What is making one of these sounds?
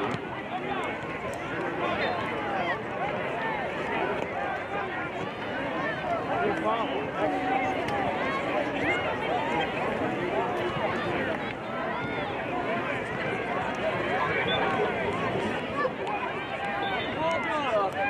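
Many children and adults shout and call out across an open field.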